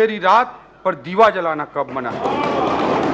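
A man speaks formally into a microphone in a large echoing hall.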